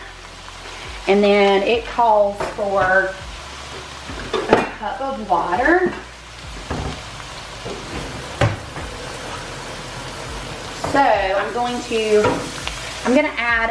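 Ground meat sizzles softly in a pan.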